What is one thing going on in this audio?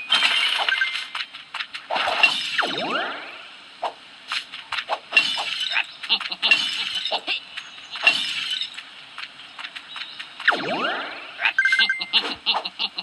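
Bright game music and jingling effects play.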